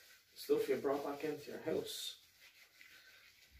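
A man rubs his hands together.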